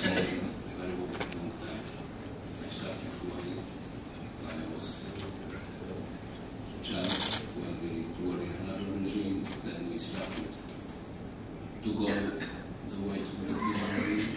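A man speaks calmly through a microphone and loudspeakers in a large room.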